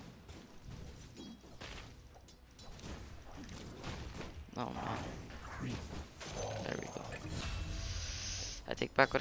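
Fantasy battle sound effects clash and burst as spells and weapon strikes hit.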